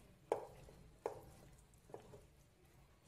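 Pasta tumbles and clatters into a glass dish.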